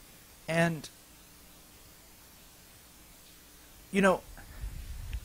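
A middle-aged man speaks a couple of short words close to a microphone, with pauses between them.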